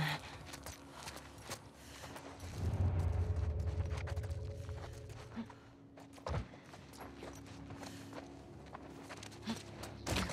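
Footsteps crunch on a debris-strewn floor.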